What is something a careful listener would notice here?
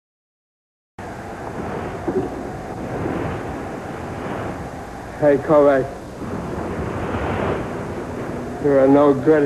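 A man speaks gruffly and with strain, close by.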